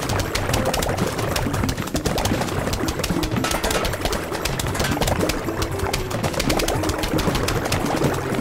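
Cartoon plants rapidly shoot peas with quick popping and thudding hits.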